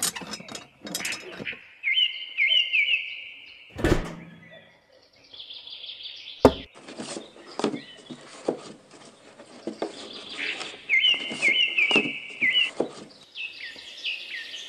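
Small plastic pieces click and tap as they are handled and pressed into place.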